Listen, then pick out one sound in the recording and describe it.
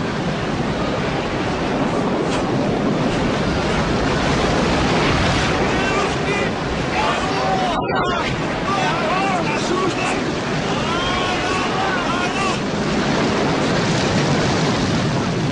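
Storm waves crash and roar steadily.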